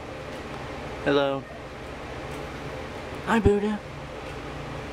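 A parrot squawks and chatters up close.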